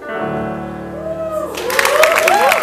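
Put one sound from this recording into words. A piano rings out a held final chord that fades.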